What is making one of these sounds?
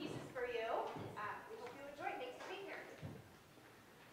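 A woman speaks to an audience in a large echoing hall.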